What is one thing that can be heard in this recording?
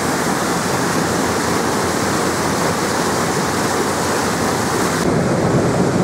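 Water churns and rushes loudly in a boat's wake.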